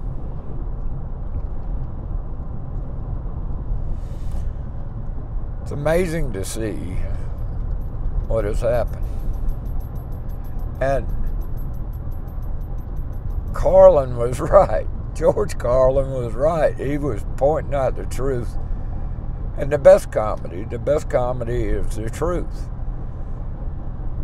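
A car engine and road noise rumble steadily from inside a moving car.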